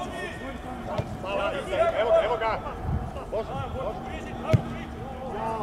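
A football thumps as a player kicks it.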